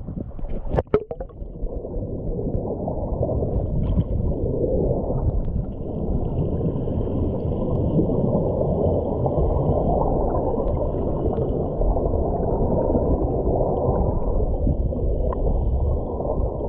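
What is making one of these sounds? Water bubbles and rushes, heard muffled from underwater.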